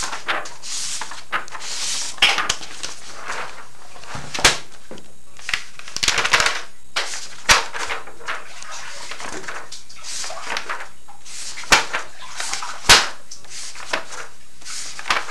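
Paper pages rustle and crackle as they are turned by hand.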